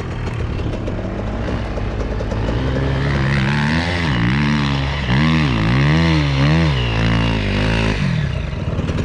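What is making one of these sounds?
Another dirt bike engine buzzes a short way off, climbing a hill.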